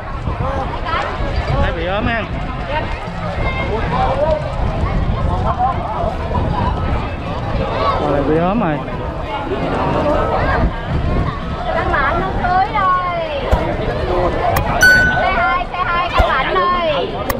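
A crowd of men and women chatters and shouts outdoors.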